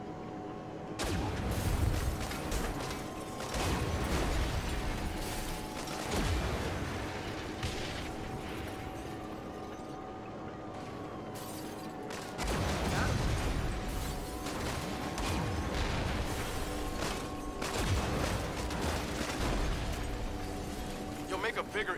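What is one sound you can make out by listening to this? Explosions boom loudly again and again.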